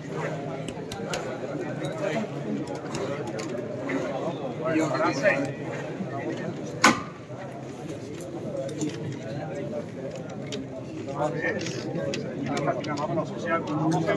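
A crowd of men chatters and murmurs close by.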